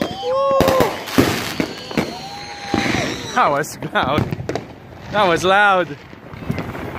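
Fireworks whistle with a shrill rising and falling pitch.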